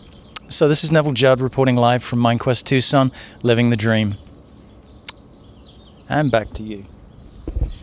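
A man speaks clearly and calmly into a close microphone.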